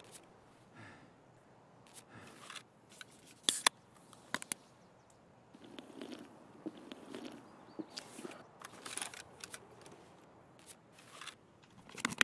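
Small items click and clatter as they are moved about.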